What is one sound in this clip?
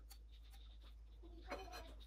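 A knife spreads filling on a wafer.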